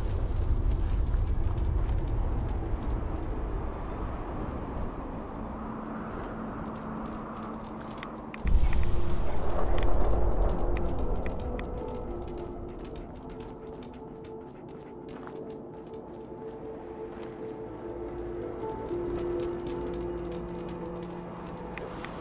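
Footsteps crunch steadily over rough ground.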